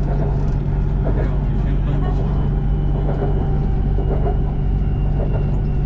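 A train rumbles steadily along an elevated track, heard from inside a carriage.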